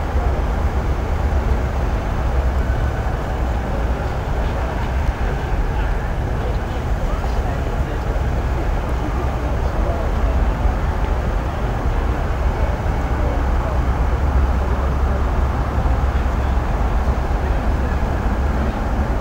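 A passenger train rumbles steadily past along the tracks.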